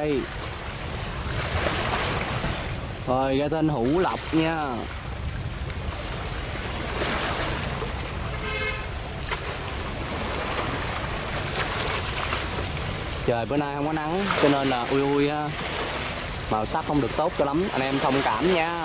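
Water splashes and rushes against a moving hull.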